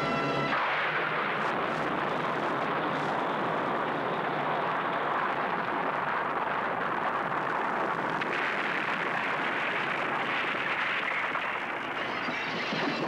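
A huge explosion roars and rumbles on.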